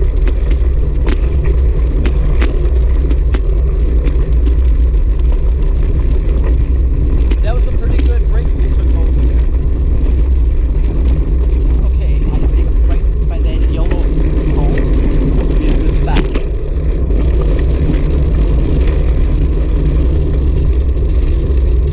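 Wind buffets the microphone of a moving bicycle outdoors.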